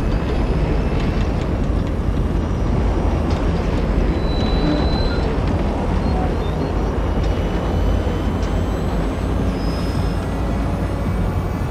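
A heavy armored vehicle's engine rumbles as it drives.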